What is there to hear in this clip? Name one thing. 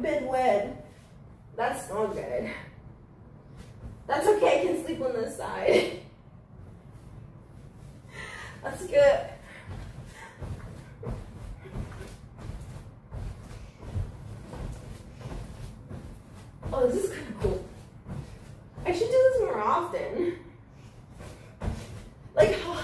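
A mattress thumps softly under jumping feet.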